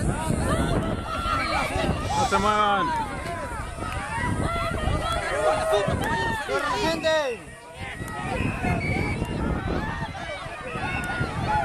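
A large crowd of men and women shouts and cheers excitedly outdoors.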